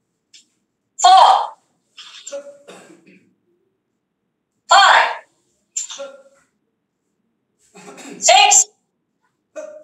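A young woman shouts short, sharp cries with her moves over an online call.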